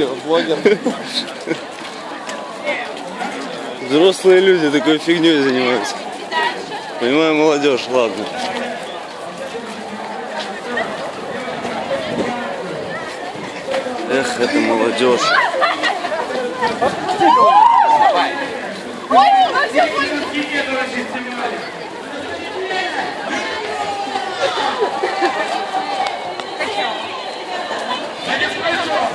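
A crowd of young people chatters and calls out nearby outdoors.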